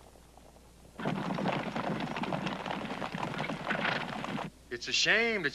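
Horses gallop over dusty ground.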